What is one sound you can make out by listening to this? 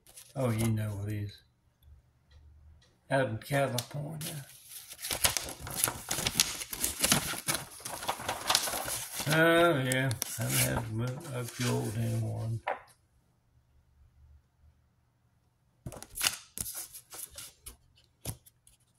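Paper cards rustle as a hand handles them.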